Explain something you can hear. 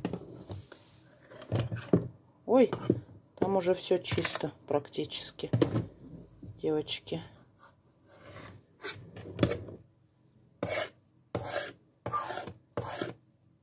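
A spoon scrapes and scoops through foamy water in a plastic bowl.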